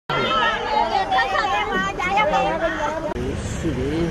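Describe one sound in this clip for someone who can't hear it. Several women and men talk and laugh excitedly close by.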